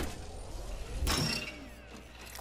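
A metal box clanks open.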